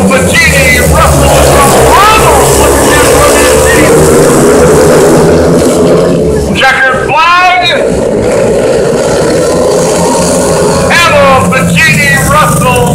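Several motorcycle engines roar loudly, rising and falling in pitch as the bikes pass.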